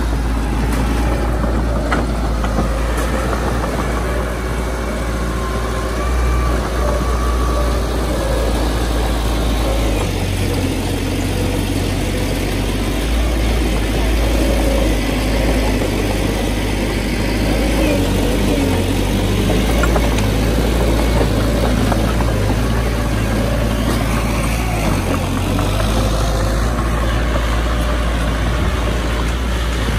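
Bulldozer tracks clank and squeak as the bulldozer crawls.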